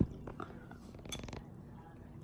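A young woman slurps a drink through a straw.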